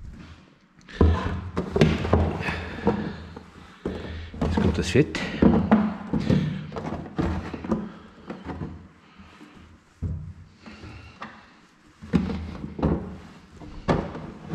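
Hands rummage and knock against a plastic tub.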